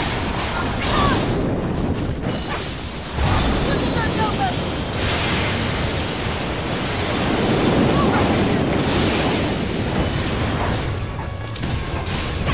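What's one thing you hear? A blade swishes and strikes with a bright burst.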